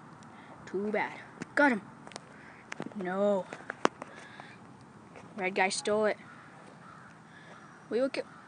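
A young boy talks excitedly in short bursts, close to a microphone.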